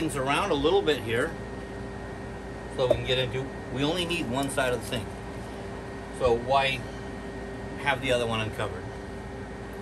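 A middle-aged man talks calmly and close by, in short bursts.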